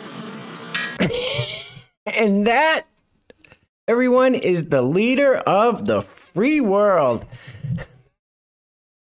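A man talks and laughs with animation, close to a microphone.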